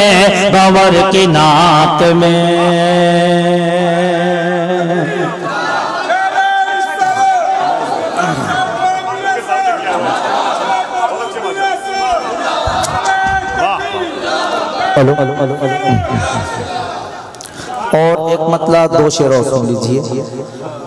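A man recites in a long, drawn-out singing voice through a microphone and loudspeakers.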